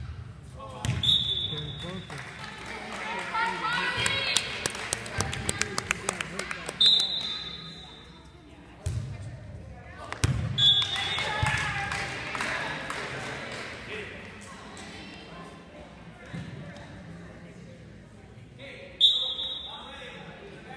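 A whistle blows sharply in an echoing gym.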